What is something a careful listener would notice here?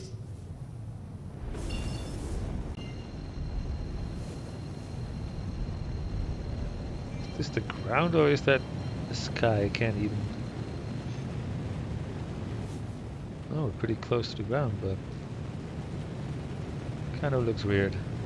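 A spacecraft engine rumbles steadily.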